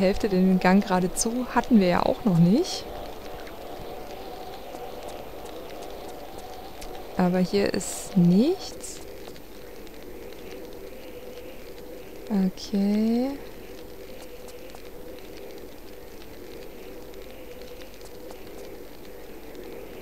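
Footsteps patter quickly on stone in an echoing passage.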